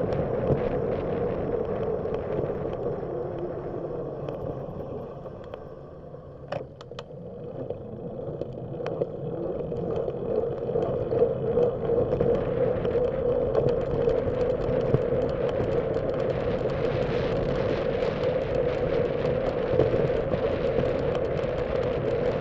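Road noise rumbles steadily inside a moving car, dropping as the car slows and growing as it speeds up again.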